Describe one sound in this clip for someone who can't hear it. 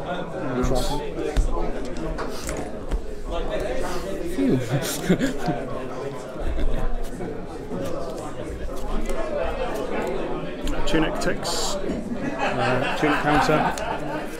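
Playing cards slide and tap softly on a table mat.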